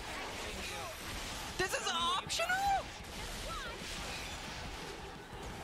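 Magical battle effects whoosh and crackle.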